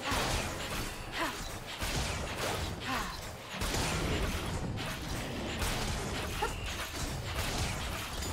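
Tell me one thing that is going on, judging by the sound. Game characters clash with sharp hits and bursts.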